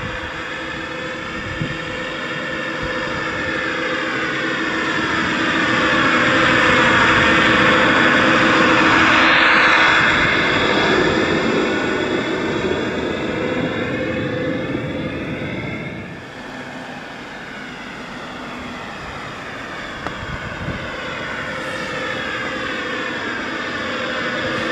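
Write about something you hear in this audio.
A small electric train motor whines steadily, growing louder as the train passes close and then fading.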